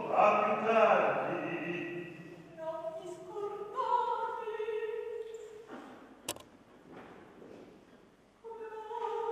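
A woman sings in a strong, sustained operatic voice that echoes in a large hall.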